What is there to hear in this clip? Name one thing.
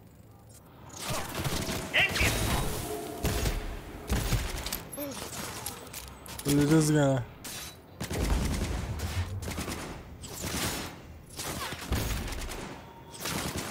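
Gunshots fire in rapid bursts, loud and sharp.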